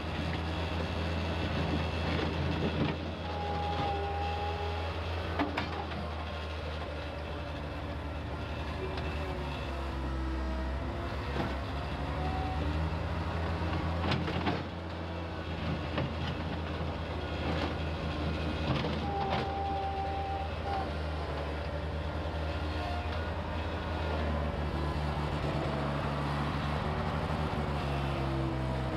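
A skid steer loader's diesel engine rumbles steadily close by.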